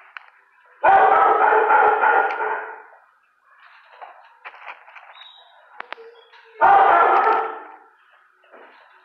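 A dog barks loudly close by.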